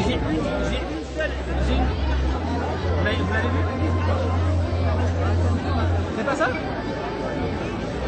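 A crowd chatters outdoors in the background.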